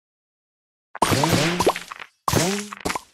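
A blast booms and crackles as candies explode.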